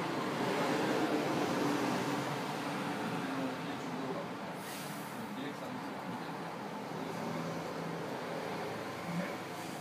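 Men talk casually nearby, their voices overlapping.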